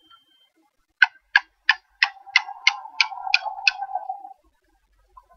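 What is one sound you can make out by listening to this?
Quick electronic ticks click in a rising series.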